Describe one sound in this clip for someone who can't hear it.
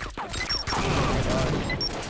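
Explosions boom and roar.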